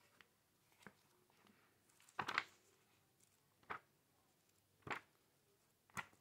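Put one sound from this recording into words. Paper pages rustle and flip as a comic book is leafed through.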